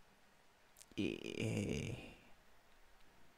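A young man laughs briefly, close into a microphone.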